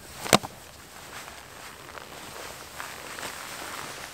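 Footsteps crunch on grass outdoors.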